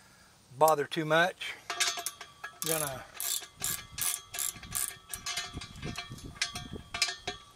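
Metal door hardware clicks and rattles under a man's hands.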